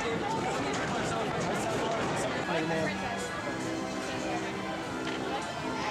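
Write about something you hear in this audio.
A crowd murmurs outdoors.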